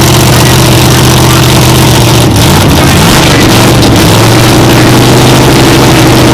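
A loud race car engine idles with a deep, rough rumble.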